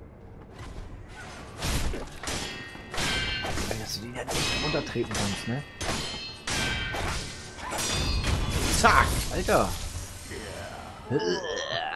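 Swords clash with sharp metallic rings.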